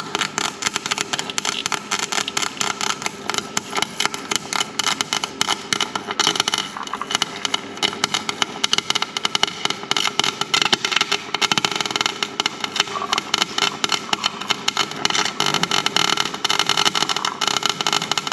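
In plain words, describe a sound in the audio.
A welding torch crackles and sizzles steadily, close by.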